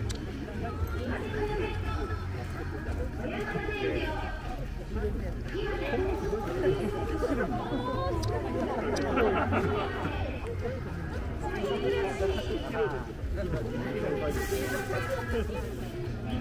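Young women chatter and exclaim excitedly close by.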